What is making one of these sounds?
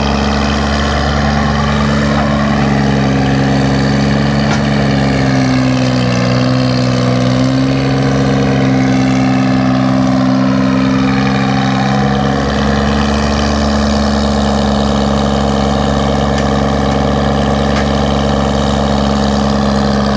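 A diesel engine of an old excavator chugs loudly and steadily close by, its pitch rising and falling as it works.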